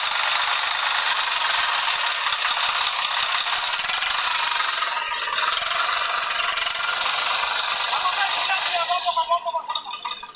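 A tractor engine roars loudly close by.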